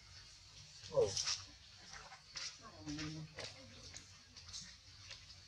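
Monkeys rustle through grass as they run.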